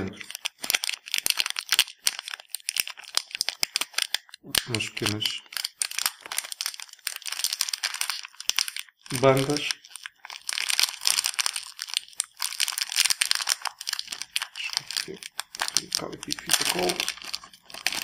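Plastic crinkles and rustles close by as hands handle it.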